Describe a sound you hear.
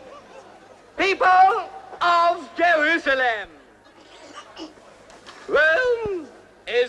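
A middle-aged man declaims loudly, shouting to a crowd.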